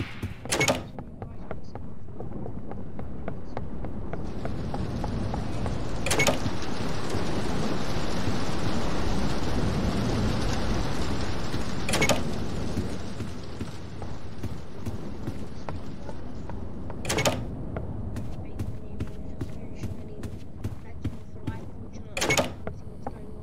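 A wooden door swings open with a sharp knock.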